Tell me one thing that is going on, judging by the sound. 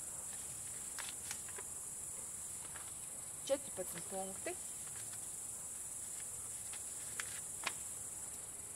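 Sheets of paper rustle and crinkle.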